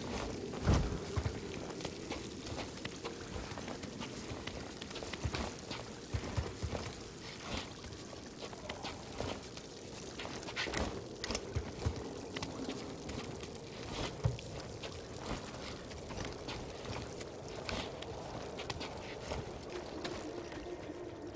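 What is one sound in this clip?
Footsteps shuffle and knock on a hard, cluttered floor.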